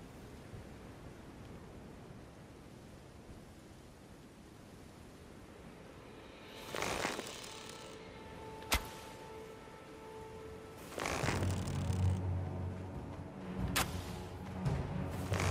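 Footsteps brush and thud through tall grass.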